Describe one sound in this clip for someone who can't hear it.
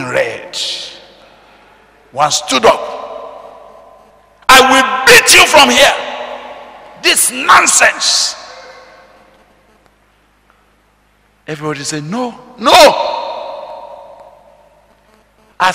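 A man preaches with animation into a microphone, his voice echoing in a large hall.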